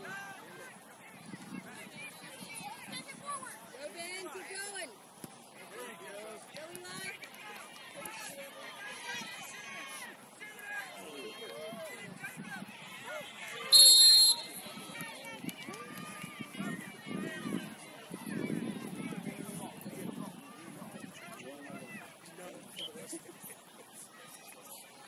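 Players and spectators shout and call out across an open field outdoors.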